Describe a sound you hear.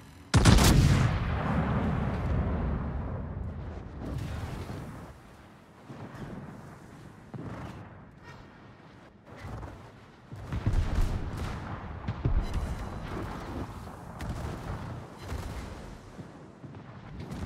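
Water rushes past a ship's hull.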